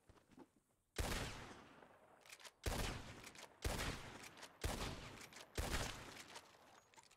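A pistol fires several loud shots, each echoing outdoors.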